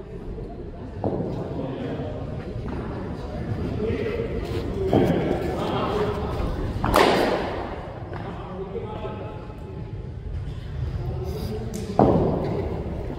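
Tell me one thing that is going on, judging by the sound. A cricket ball thuds onto the pitch and bounces.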